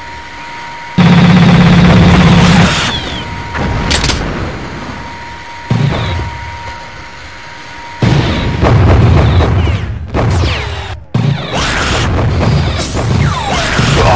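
Loud blasts boom.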